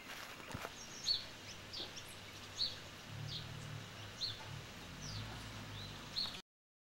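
Small birds chirp in short, high calls.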